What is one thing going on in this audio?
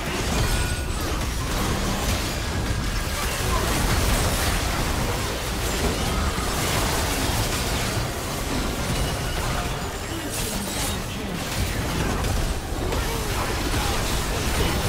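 Magic blasts, hits and explosions crackle and boom in a busy fight.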